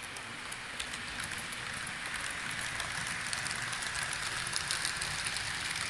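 A second model train rattles past close by.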